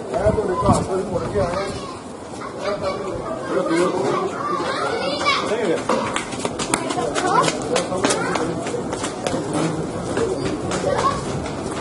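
People talk nearby outdoors.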